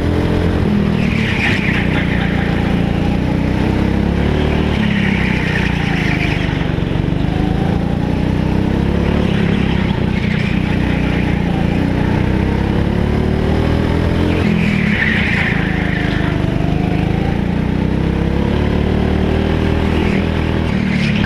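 Go-kart tyres squeal on the track in the turns.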